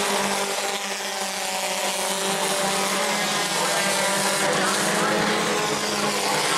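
Several race car engines roar loudly.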